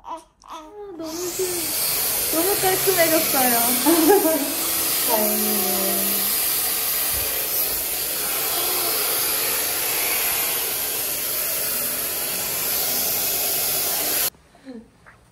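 A hair dryer blows with a steady roar.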